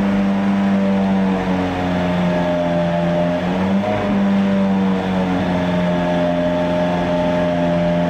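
A sports car engine runs loudly, its pitch wavering slightly.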